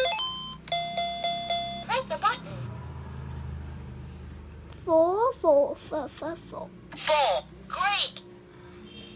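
A toy computer plays bright electronic beeps and chirps.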